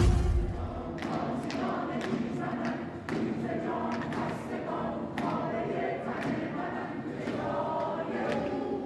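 A crowd chants loudly in an echoing hall.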